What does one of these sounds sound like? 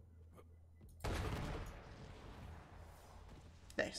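A loud explosion bursts and crackles.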